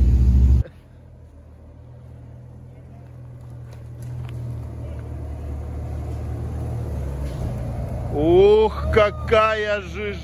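Tyres crunch over dry leaves and dirt.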